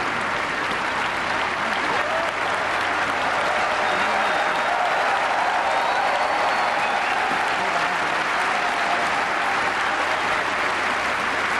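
A man sings loudly in an operatic voice.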